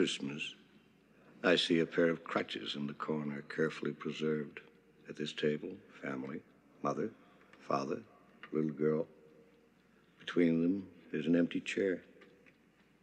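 A middle-aged man speaks calmly and firmly nearby.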